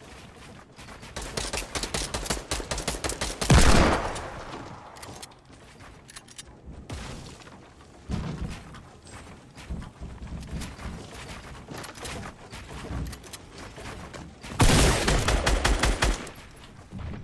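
Rapid clattering and banging of pieces being built in a video game.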